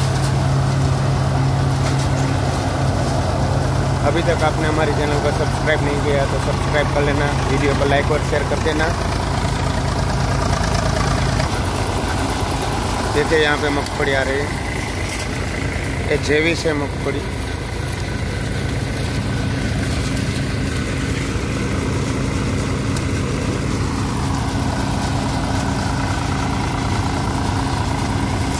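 A tractor-driven threshing machine rumbles and drones steadily.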